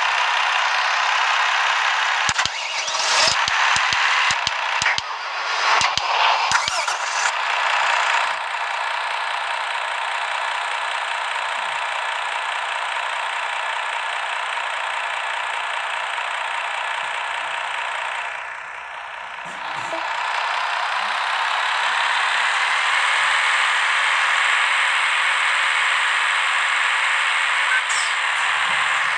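A truck engine hums steadily as a truck drives along.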